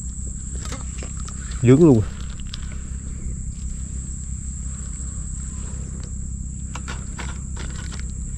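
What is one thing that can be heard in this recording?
A fishing reel clicks and whirs as it is handled.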